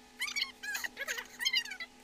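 A young woman laughs.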